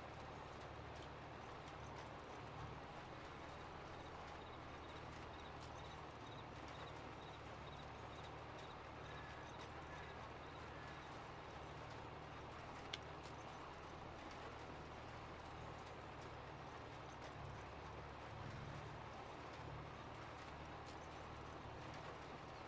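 A seed drill rumbles over soil.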